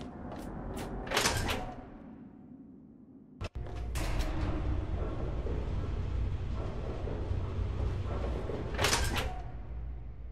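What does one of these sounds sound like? A heavy metal door grinds open with a hiss.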